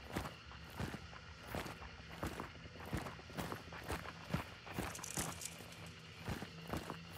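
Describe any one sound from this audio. Footsteps thud on dirt at a steady walking pace.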